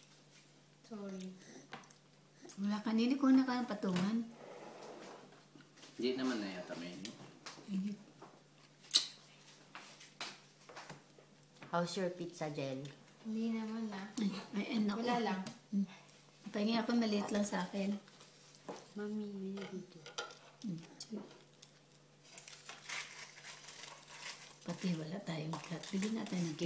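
A woman speaks softly and playfully to a small child close by.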